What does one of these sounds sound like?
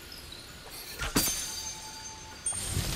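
An arrow whooshes from a bow and strikes.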